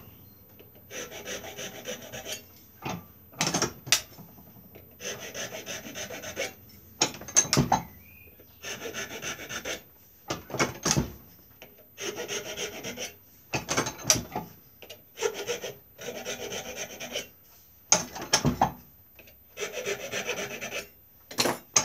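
A blade shaves wood in repeated scraping strokes.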